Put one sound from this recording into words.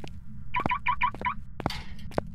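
A handheld radio beeps several times in quick succession.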